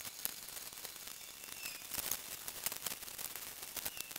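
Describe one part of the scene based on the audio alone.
A metal can clinks.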